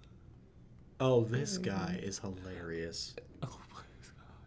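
A young man talks with animation over a microphone.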